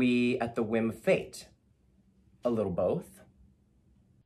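A man speaks calmly and expressively, close by.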